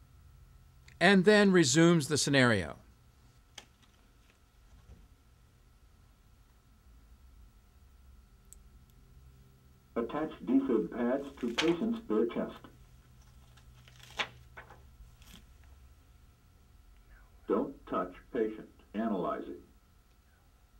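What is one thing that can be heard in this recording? A recorded voice prompt speaks through a small device loudspeaker.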